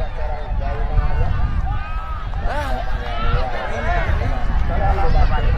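A large outdoor crowd chatters and calls out all at once.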